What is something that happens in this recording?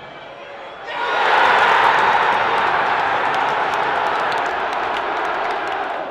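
A large stadium crowd bursts into a loud roar and cheers.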